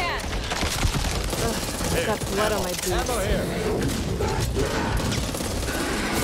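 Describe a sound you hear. A monster snarls and growls close by.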